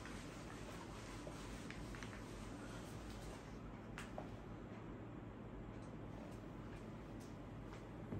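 An eraser rubs across a whiteboard.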